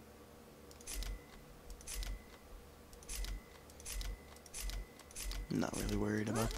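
Menu selections tick with short clicks.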